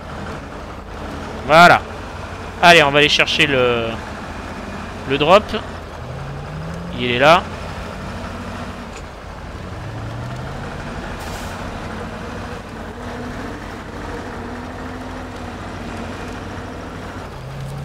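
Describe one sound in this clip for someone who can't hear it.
A heavy truck engine rumbles steadily.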